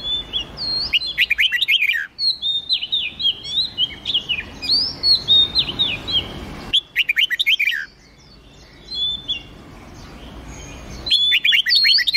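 A bird chirps in rapid bursts of sharp notes.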